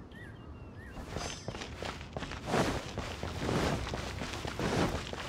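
Footsteps run quickly across stone.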